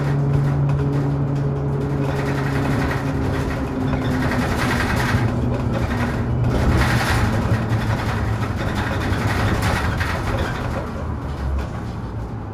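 A bus engine hums and whines as it pulls away and speeds up.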